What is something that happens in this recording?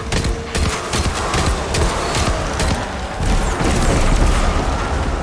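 Rapid gunfire cracks and booms in bursts.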